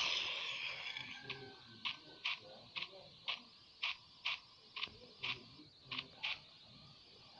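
Footsteps tap quickly and evenly.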